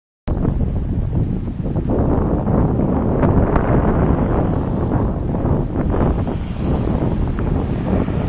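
A bicycle rattles over the road.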